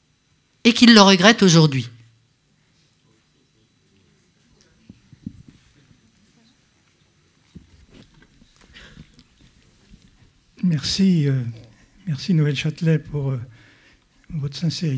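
An elderly woman speaks with animation into a microphone, amplified in a large room.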